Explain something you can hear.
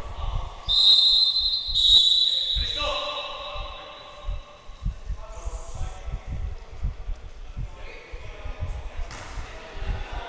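A basketball bounces with dull thuds on a wooden floor in an echoing gym.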